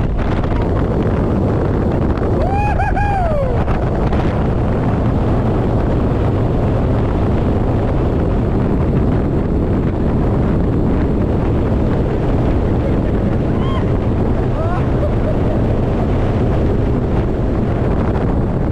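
Strong wind roars past loudly throughout.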